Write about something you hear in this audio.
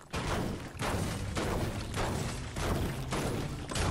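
A pickaxe strikes metal with repeated clangs.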